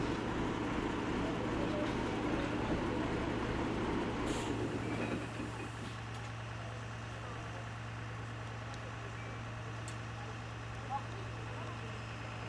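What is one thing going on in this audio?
A large truck engine rumbles steadily nearby.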